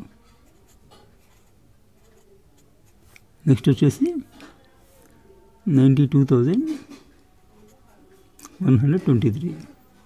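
A pen scratches on paper as it writes.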